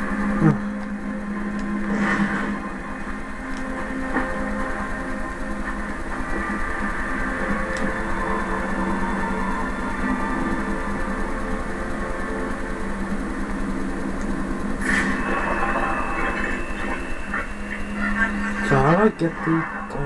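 Dark, droning music plays through a small loudspeaker in a room.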